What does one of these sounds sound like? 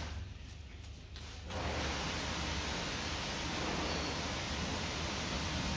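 Scissors snip through fabric close by.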